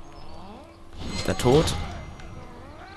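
A blade stabs into a body with a sharp thud.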